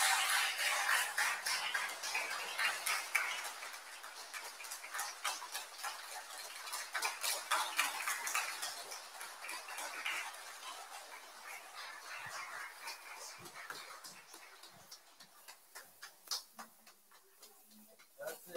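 An audience applauds in a large echoing hall, gradually fading.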